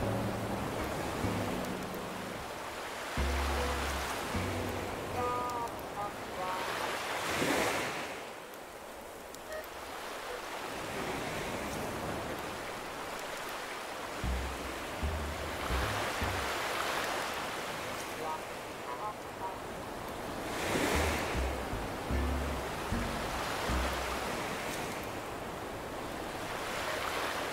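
Gentle waves wash onto a beach in slow swells.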